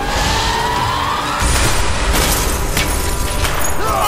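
Glass shatters and scatters.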